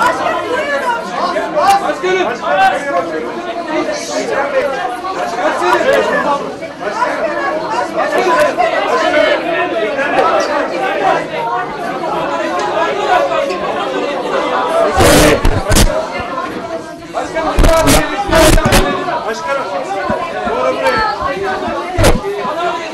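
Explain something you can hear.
A crowd of people chatter and call out loudly nearby.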